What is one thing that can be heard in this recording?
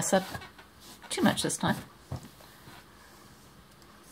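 Fabric rustles as a hand slides it across a surface.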